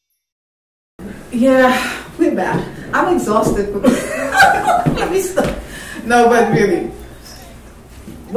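A woman talks with animation nearby.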